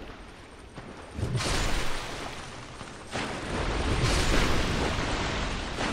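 A sword swings and strikes with heavy thuds.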